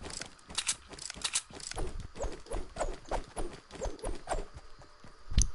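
A pickaxe strikes repeatedly with quick hard knocks.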